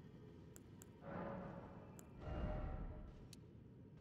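A low whooshing swell rises and fades.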